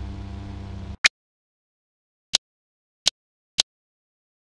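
Short clicks sound as menu items are picked.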